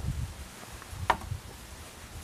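A heavy metal block thuds down onto grass.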